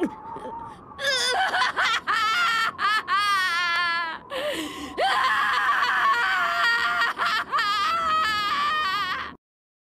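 A young man screams in anguish, loud and drawn out.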